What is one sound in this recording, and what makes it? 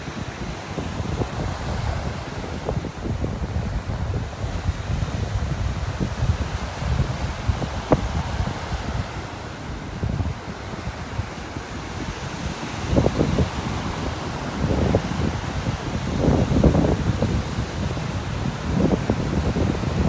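Small waves wash and break onto a shore.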